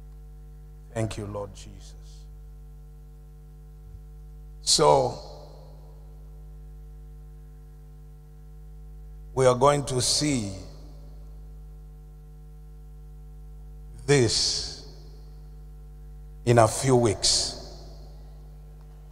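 A man shouts in short bursts through a microphone and loudspeakers in a large echoing hall.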